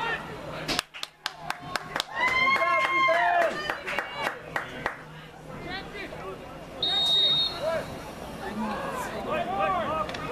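Spectators shout and cheer nearby outdoors.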